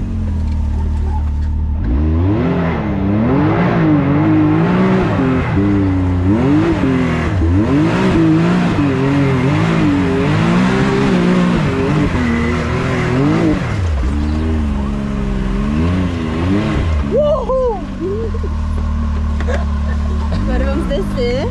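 An off-road vehicle's engine rumbles and revs up and down loudly.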